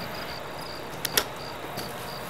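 A switch clicks.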